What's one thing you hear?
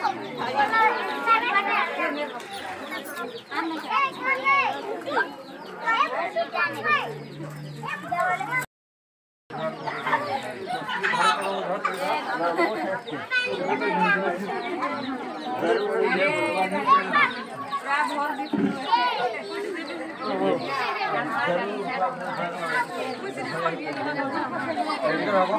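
A crowd of women and children chatter and call out close by.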